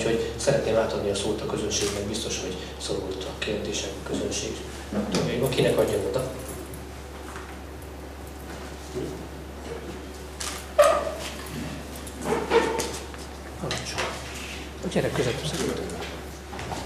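A man speaks into a microphone, heard over a loudspeaker in a room with some echo.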